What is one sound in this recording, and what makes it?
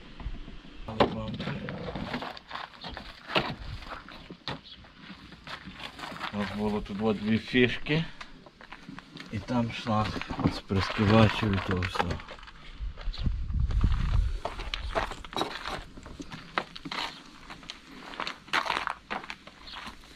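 Plastic parts click and knock as a car bumper is pulled off.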